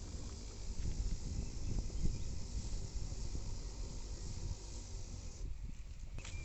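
A hand sprayer hisses as it sprays.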